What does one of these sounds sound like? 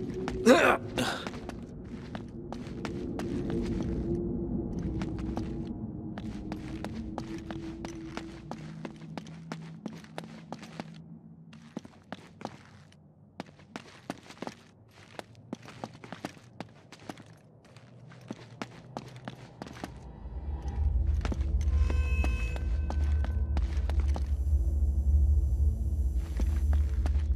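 Footsteps scuff quickly over stone.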